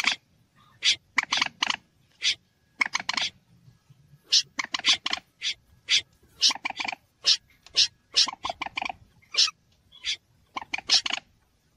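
A waterbird gives loud, sharp calls in quick bursts.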